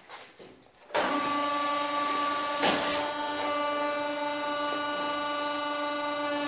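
A woodworking machine starts up and runs with a steady, pitched whine.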